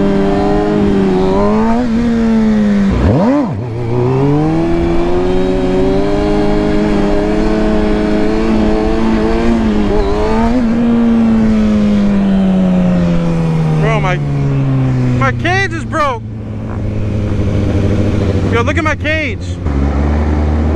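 A motorcycle engine roars close by, its pitch rising and falling as the rider speeds up and slows down.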